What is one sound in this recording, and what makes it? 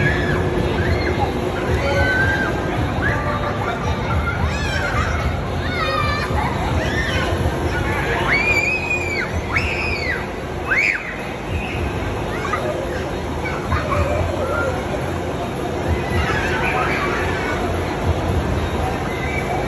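A foam machine blows with a steady low roar.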